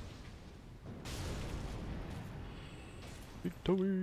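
A fireball bursts with a loud roar.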